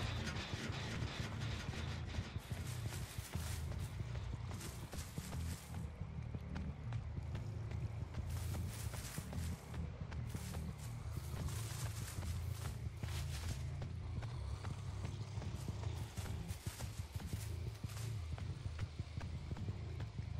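Footsteps crunch through dry leaves and grass.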